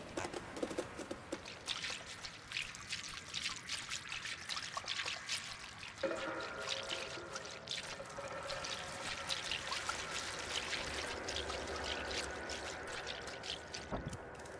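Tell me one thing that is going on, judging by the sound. A cat's paws patter across a gritty concrete floor.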